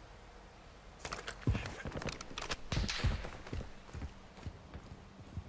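Footsteps thud quickly on a hard roof.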